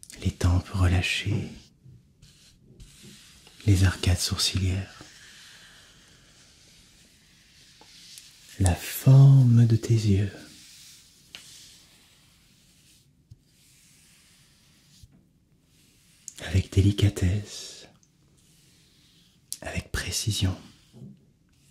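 A young man whispers softly and close to a microphone.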